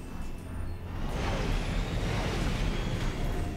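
A hovering vehicle's engine rises in pitch as it climbs.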